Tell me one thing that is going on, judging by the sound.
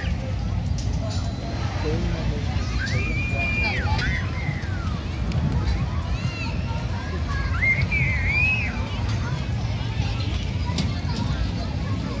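A crowd chatters and children shout at a distance outdoors.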